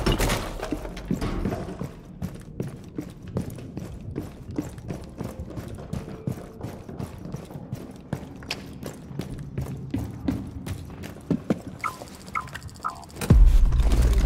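Footsteps tap quickly and steadily on a hard floor.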